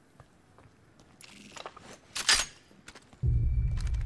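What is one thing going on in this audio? A weapon is picked up with a short metallic clatter.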